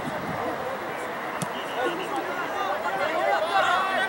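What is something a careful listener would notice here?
A football is kicked with a dull thud outdoors.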